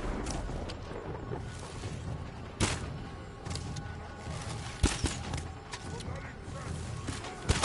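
A bowstring snaps as arrows are shot.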